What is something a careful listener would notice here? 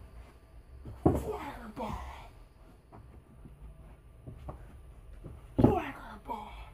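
Feet thump on a wooden floor.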